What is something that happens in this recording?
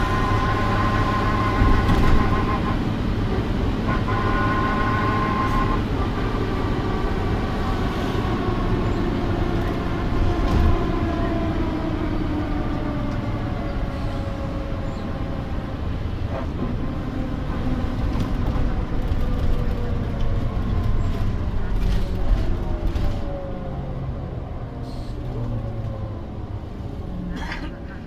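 A bus engine hums and whines steadily as the bus drives along.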